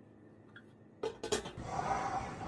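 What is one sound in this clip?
A metal pot lid clanks.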